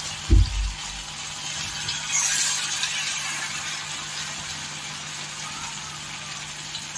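Hot oil sizzles and crackles steadily around frying batter.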